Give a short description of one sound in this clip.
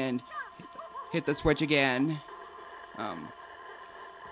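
Cartoonish video game sound effects chirp and boing.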